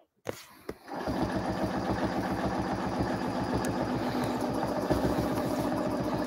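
A sewing machine runs steadily with a fast, even stitching rhythm.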